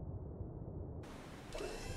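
Sea waves wash and splash, with wind blowing.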